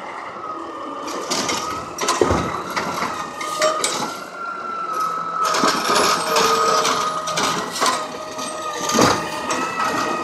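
A plastic bin bangs and clatters against a garbage truck.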